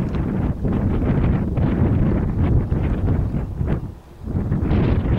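Wind roars and buffets in strong gusts outdoors.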